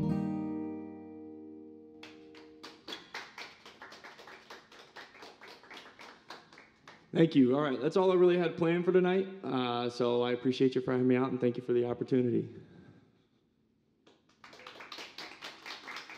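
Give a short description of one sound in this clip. A man strums an acoustic guitar with a steady rhythm.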